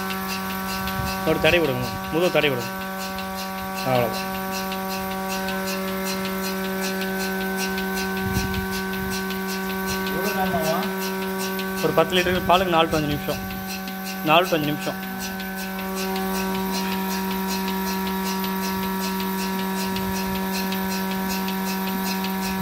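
A milking machine hums steadily.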